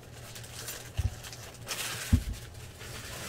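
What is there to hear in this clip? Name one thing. Cards tap and click as they are stacked on a pile.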